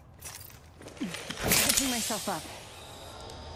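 A syringe is used with a hiss.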